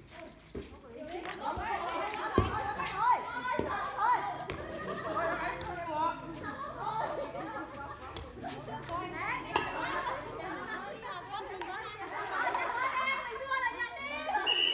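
A crowd of young people chatters loudly.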